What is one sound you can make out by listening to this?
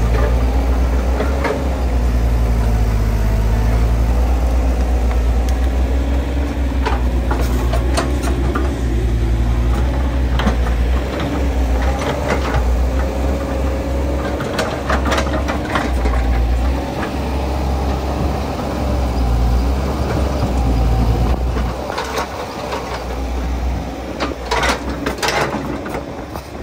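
A diesel excavator engine rumbles and revs close by.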